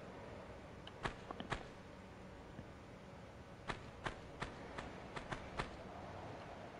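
Footsteps tap quickly on a stone floor.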